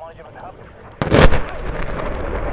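A distant explosion booms and rumbles across open country.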